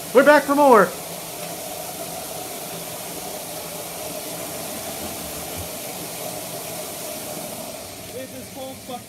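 Water sprays and hisses steadily.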